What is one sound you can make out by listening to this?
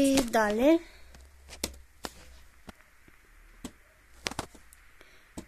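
A finger taps a laptop key with a soft click.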